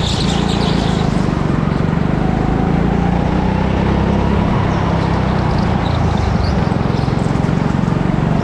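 A go-kart engine drones loudly and steadily up close.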